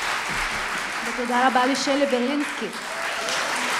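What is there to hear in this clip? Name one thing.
A woman speaks into a microphone over a hall loudspeaker.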